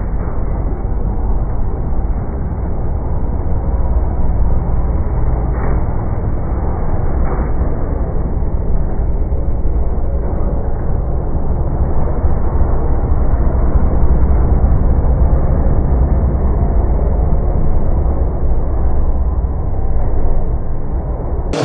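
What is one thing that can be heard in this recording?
A race car engine drones in the distance.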